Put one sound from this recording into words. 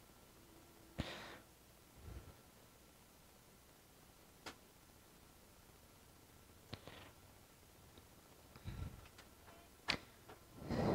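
Metal tweezers tap and scrape lightly against a circuit board.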